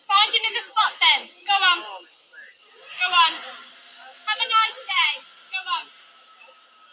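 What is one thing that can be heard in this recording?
A young woman shouts angrily nearby.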